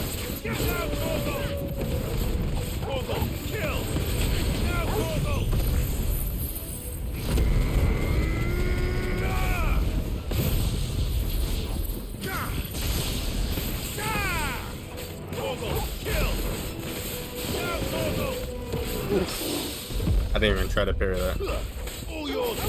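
Heavy blasts boom and rumble.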